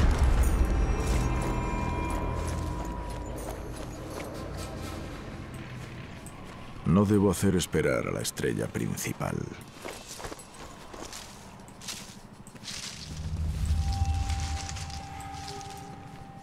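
Footsteps rustle softly through grass and leaves.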